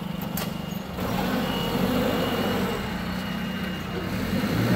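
A forklift engine revs louder as the forklift drives off.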